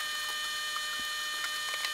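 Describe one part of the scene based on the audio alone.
A screwdriver turns a small screw with faint clicks.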